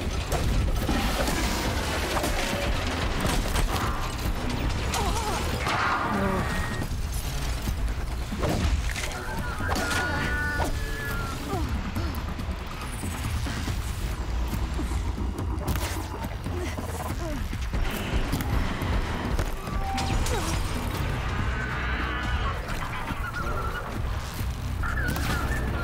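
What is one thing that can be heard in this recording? Mechanical creatures screech and growl.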